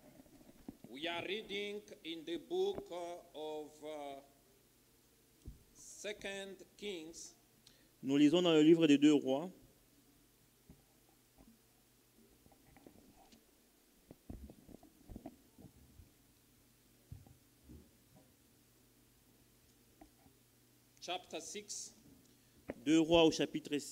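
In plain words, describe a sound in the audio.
A man speaks calmly into a microphone, heard through a loudspeaker in an echoing room, with pauses.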